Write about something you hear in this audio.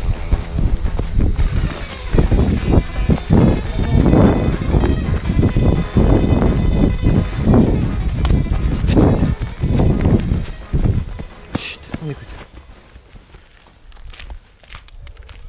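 Footsteps crunch over grass and dead leaves outdoors.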